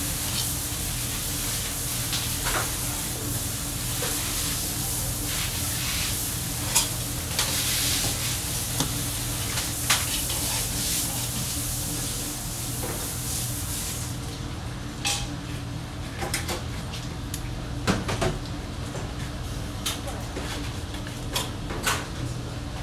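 A knife taps and scrapes on a plastic cutting board.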